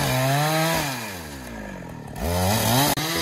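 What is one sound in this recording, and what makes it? A chainsaw engine briefly drops to a low idle.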